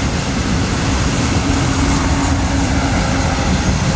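A truck drives past on the road nearby.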